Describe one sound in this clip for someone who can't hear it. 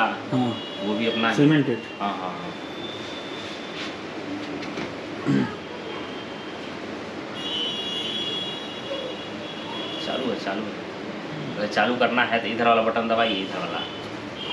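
A man talks nearby in a relaxed voice.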